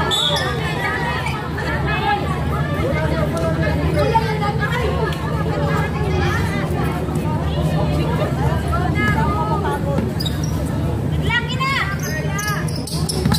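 A crowd of young people chatters and calls out outdoors.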